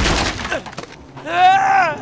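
Wooden planks crash and splinter.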